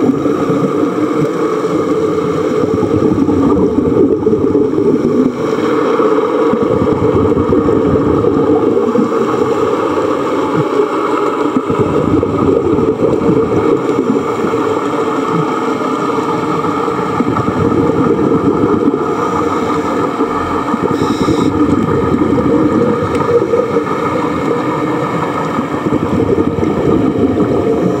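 Air bubbles rush and gurgle underwater in bursts.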